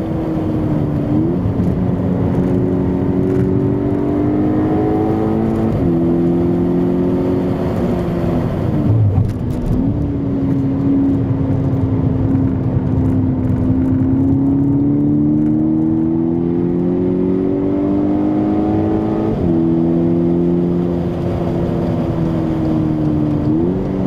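Tyres hum on the track surface.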